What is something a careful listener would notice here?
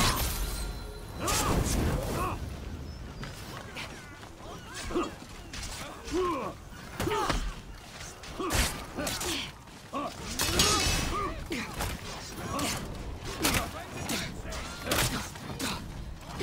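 Swords clash and strike in a fast melee.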